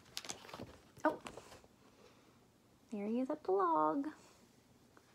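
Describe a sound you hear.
A young woman reads aloud expressively, close by.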